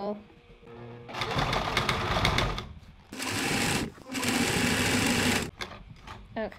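A sewing machine whirs as it stitches in quick bursts.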